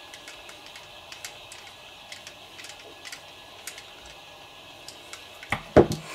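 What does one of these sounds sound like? Small plastic parts click and tick as they are fitted together by hand.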